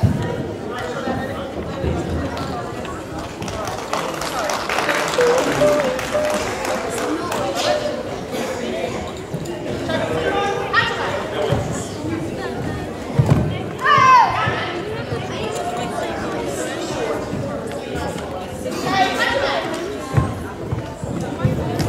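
Spectators chatter in a large echoing hall.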